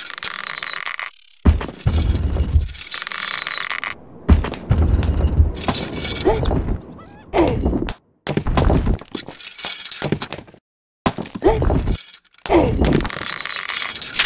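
Hammers knock on wood.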